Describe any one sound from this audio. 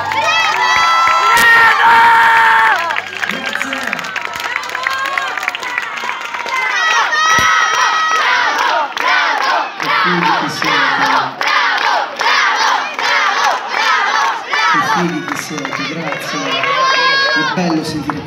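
A crowd sings along loudly nearby, outdoors.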